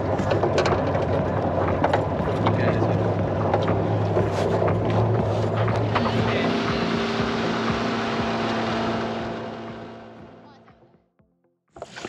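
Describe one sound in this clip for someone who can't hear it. A boat engine drones steadily, then fades away.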